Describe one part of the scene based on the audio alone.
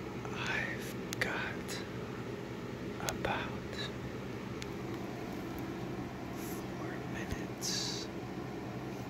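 A young man whispers very close to the microphone.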